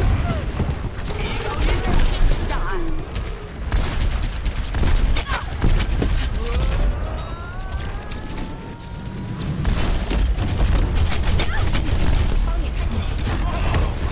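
Video game gunfire bursts rapidly.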